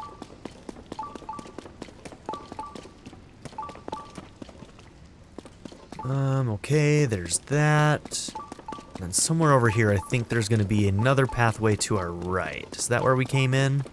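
Footsteps patter quickly over dirt.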